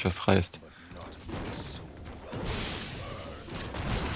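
Magical spell effects whoosh and crackle in a fight.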